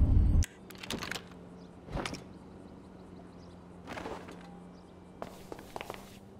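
Metal clicks as a rifle is handled.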